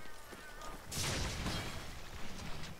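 A sword swooshes through the air in a quick slash.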